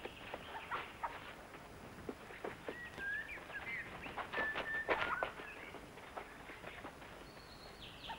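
Footsteps tread on a dirt path.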